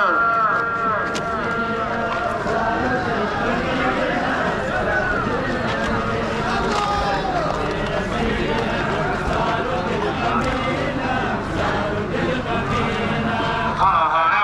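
A large crowd of men chants and murmurs outdoors.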